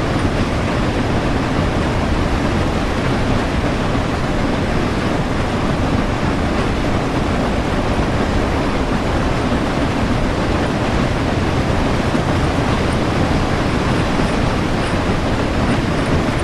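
Steam hisses steadily.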